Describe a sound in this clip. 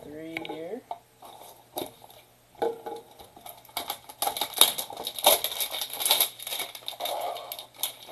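Cardboard packaging rustles and crinkles as it is handled and opened close by.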